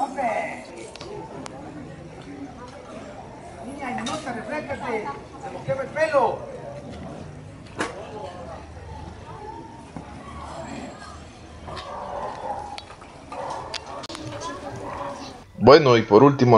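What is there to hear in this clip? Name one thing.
Men and women chatter outdoors at a distance.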